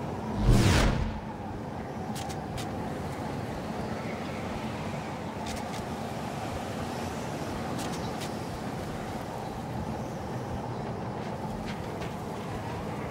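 Wind blows steadily across an open outdoor space.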